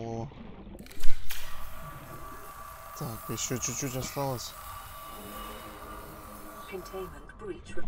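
A repair tool whirs and hisses steadily.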